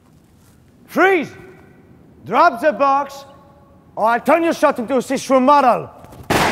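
A man shouts loudly and angrily close by.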